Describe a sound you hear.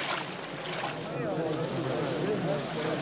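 A crowd of people murmurs and talks.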